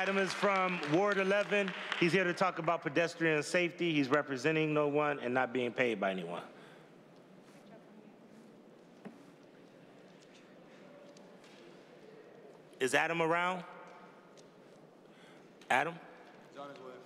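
A man speaks steadily through a microphone in a large room.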